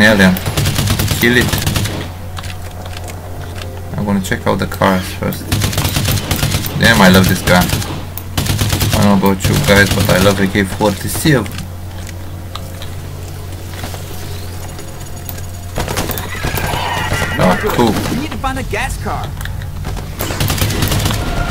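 A rifle fires in sharp bursts.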